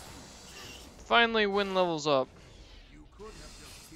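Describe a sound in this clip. Magic spells burst with a whooshing blast.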